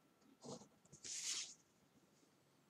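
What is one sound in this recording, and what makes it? A sheet of paper slides and rustles on a wooden table.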